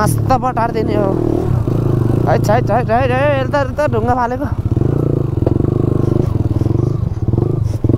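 A motorcycle engine chugs and revs nearby.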